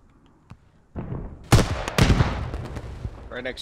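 Gunshots crack and boom.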